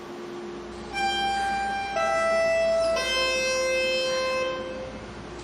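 A subway train's door chime plays three falling tones.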